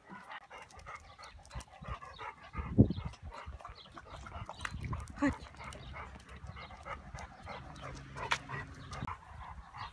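Dogs' paws patter on paving stones.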